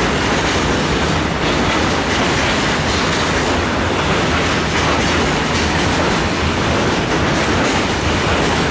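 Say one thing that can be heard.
A long freight train of container and tank wagons rumbles past.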